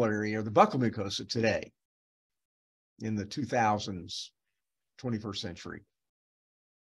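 An older man speaks calmly through a microphone, as on an online call.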